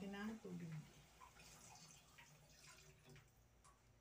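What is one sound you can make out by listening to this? Water pours from a mug into a metal pot.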